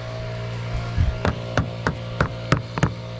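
A hammer taps sharply on metal in quick, even blows.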